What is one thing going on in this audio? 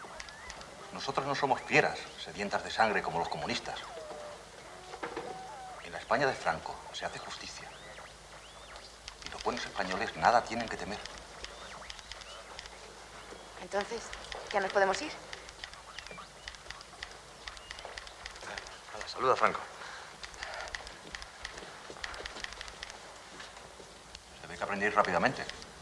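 A man speaks calmly, heard through a loudspeaker in a room.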